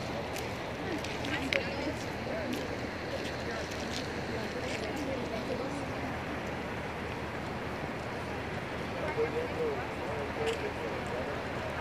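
Distant waterfalls rush steadily outdoors.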